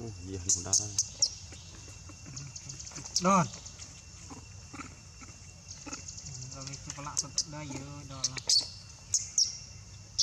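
A baby macaque screeches and cries close by.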